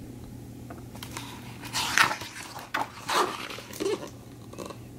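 Paper pages rustle as a book's page is turned.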